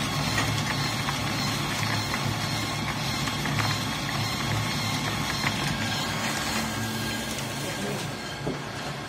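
Small granules pour and patter into a plastic bucket.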